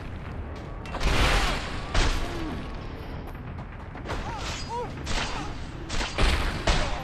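Heavy blows thud against a body on sand.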